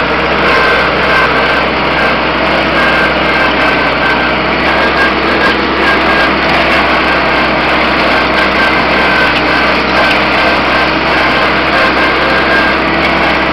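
A tractor engine chugs loudly and steadily close by.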